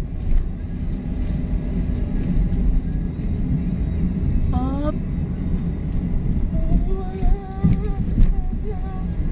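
A car engine rumbles steadily while driving along a road.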